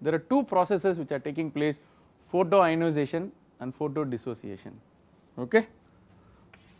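A man speaks calmly, as if lecturing, close to a microphone.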